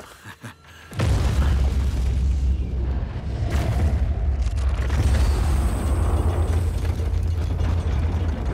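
Heavy stone rumbles and grinds loudly and steadily.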